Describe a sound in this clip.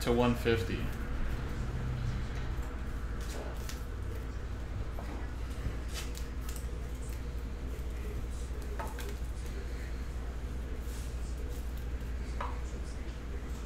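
Trading cards rustle and click as hands shuffle them.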